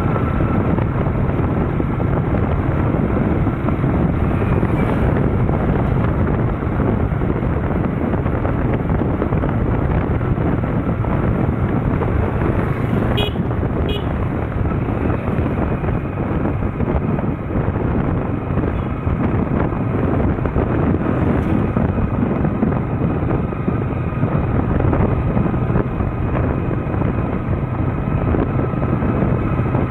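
Wind rushes and buffets loudly past a moving scooter.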